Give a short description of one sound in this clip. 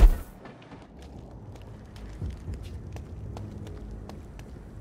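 Footsteps tread on a stone floor.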